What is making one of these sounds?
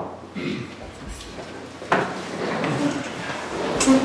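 Chairs scrape and creak as people sit down.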